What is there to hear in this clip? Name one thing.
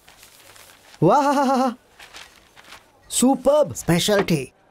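A middle-aged man calls out in a drawn-out, wavering voice, then speaks with animation nearby.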